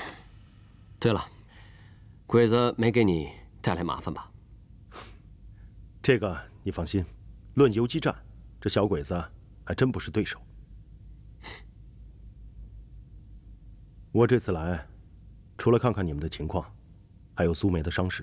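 A young man speaks calmly and warmly up close.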